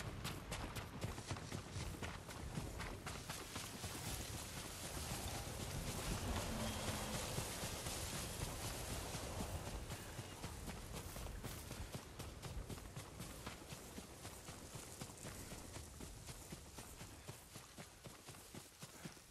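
Footsteps thud quickly through grass.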